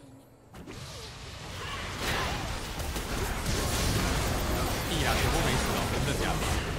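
Video game spell blasts and hits crackle and boom in a busy battle.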